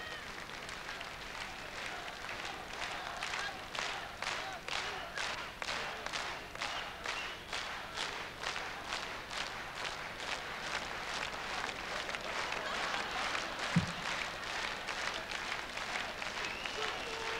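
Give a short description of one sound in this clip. A large crowd cheers and laughs.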